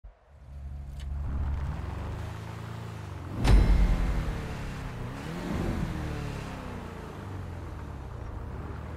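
A car engine idles and revs with a deep rumble.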